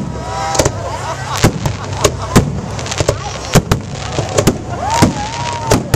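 Firework stars crackle as they burn out.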